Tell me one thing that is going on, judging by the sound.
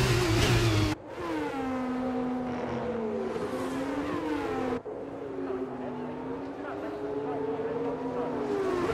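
A racing car engine whines past at a distance, rising and falling in pitch.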